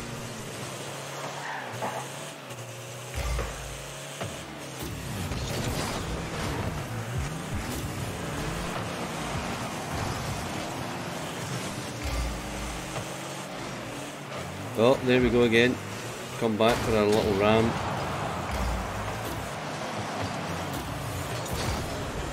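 Car engines hum and whine steadily.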